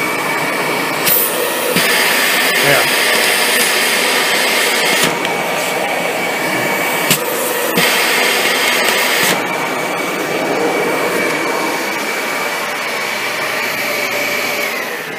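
A vacuum cleaner runs with a steady, high whine and a rushing hiss that changes as the nozzle is covered and uncovered.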